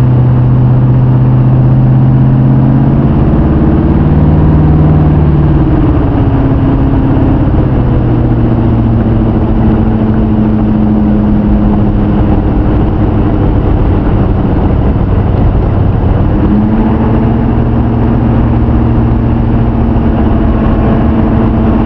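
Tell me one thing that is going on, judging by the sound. Wind rushes past an open car.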